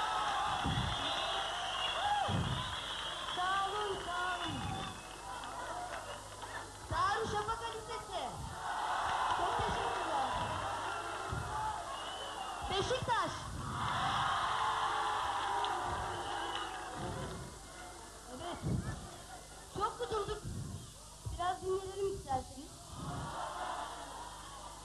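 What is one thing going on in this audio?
A large crowd cheers and screams.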